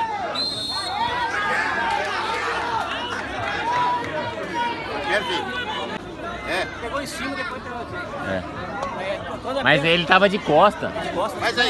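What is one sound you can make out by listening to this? Several young men shout and argue outdoors.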